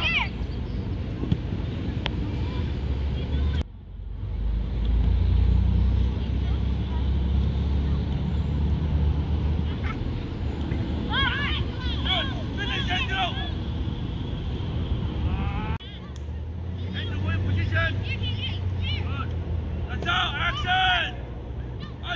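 A soccer ball thuds now and then as children kick it.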